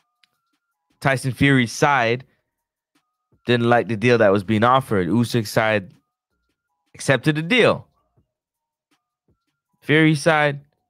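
A man speaks with animation, close into a microphone, in short bursts with pauses.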